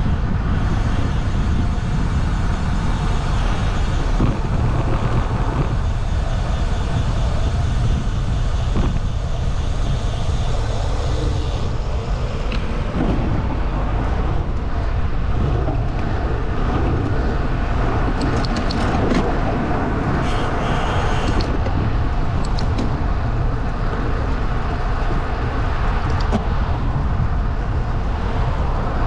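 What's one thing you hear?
Wind rumbles loudly against the microphone, outdoors.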